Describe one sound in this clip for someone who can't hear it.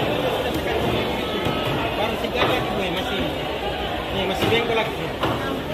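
A crowd of men and women chatter all around in a busy, echoing hall.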